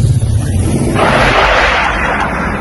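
A rocket launches with a sudden roaring whoosh.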